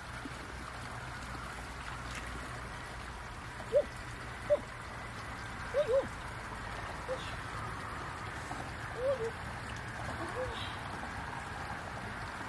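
Water sloshes softly as hands move through a shallow stream.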